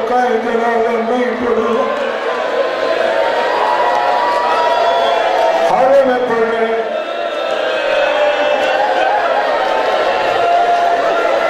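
A young man speaks forcefully into a microphone, heard through a loudspeaker.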